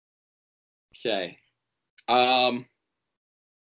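A middle-aged man speaks over an online call.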